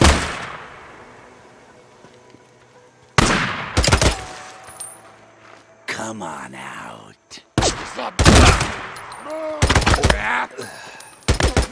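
Gunshots bang loudly, one after another.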